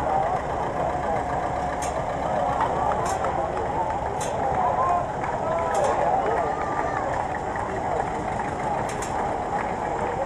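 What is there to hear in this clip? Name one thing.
A vintage tractor engine chugs past.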